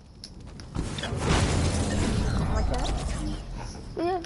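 A video game's sound effects whoosh and rumble loudly.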